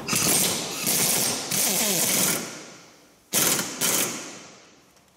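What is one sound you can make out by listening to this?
A pneumatic impact wrench whirs and rattles in loud bursts.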